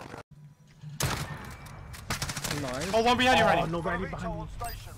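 Gunshots ring out in quick bursts.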